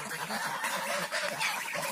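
Ducks quack nearby outdoors.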